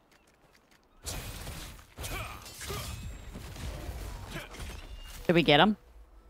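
Game combat sounds thump and clash.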